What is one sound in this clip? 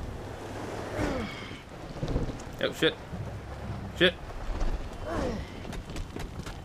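Whooshing rushes of air as a character leaps.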